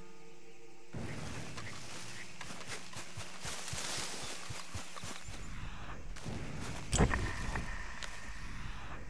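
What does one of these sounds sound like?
Footsteps rustle through dry undergrowth.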